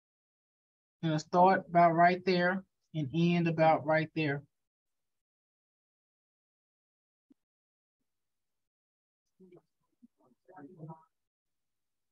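A young woman speaks calmly into a microphone, heard as if over an online call.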